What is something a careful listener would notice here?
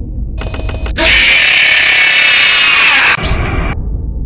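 A harsh electronic scream blares suddenly and loudly.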